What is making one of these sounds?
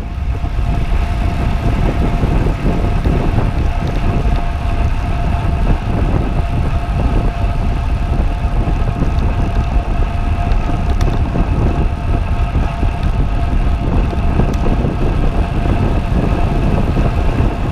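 A bicycle's tyres hum on the road.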